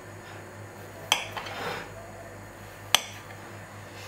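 A knife clicks against a plate.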